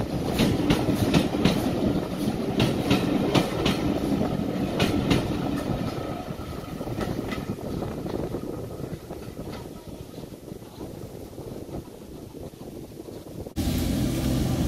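Train carriages rattle and clack past close by, slowly fading into the distance.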